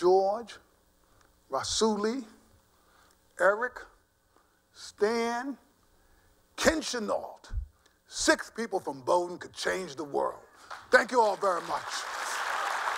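An elderly man speaks with animation into a microphone in a large hall.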